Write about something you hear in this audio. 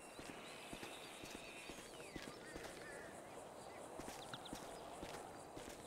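Footsteps crunch on grass and leaves.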